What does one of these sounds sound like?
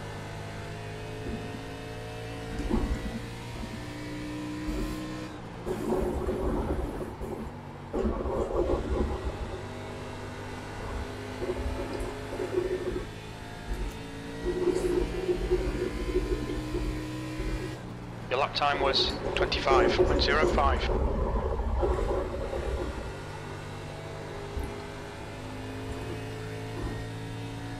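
A race car engine drones steadily, rising and falling in pitch as it shifts and brakes.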